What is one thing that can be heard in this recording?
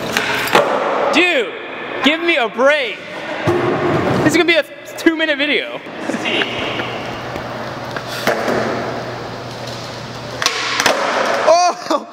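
Skateboard wheels roll and rumble across a concrete floor.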